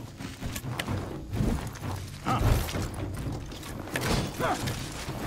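Blades clash and thud as two fighters duel.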